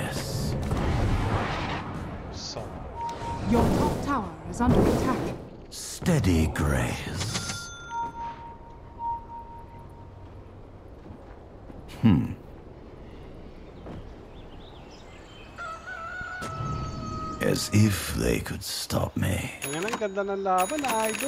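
Game sound effects chime and clash.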